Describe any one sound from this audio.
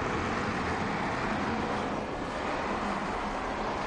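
Tyres roll on tarmac.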